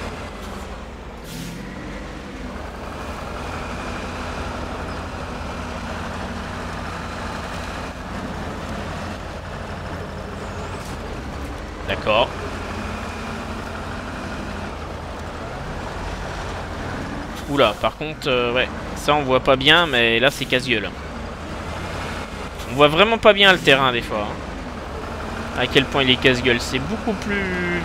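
A truck engine rumbles steadily as it climbs.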